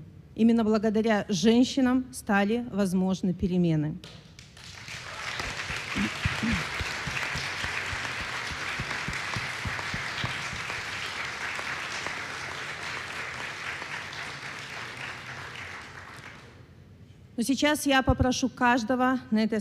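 A young woman speaks calmly through a microphone in a large hall.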